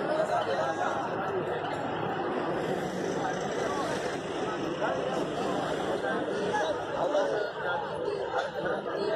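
A large crowd of men chatters and calls out outdoors.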